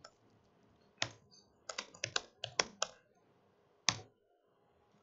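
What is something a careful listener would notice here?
Keys clatter as a man types quickly on a laptop keyboard.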